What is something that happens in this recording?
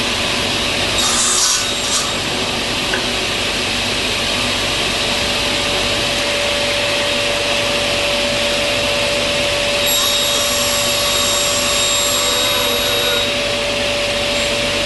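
A saw blade cuts through wood.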